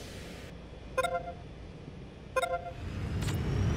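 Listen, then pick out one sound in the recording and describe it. A short electronic chime sounds twice.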